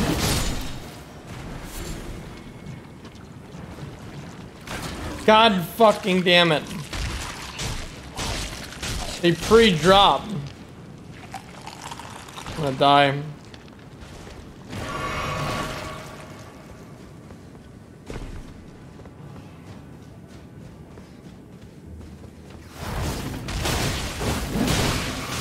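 A blade swings and slashes with sharp whooshes.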